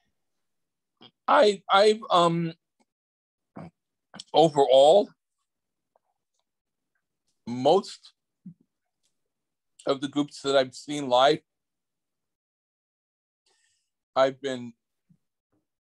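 A middle-aged man speaks with animation over an online call, in short bursts with pauses.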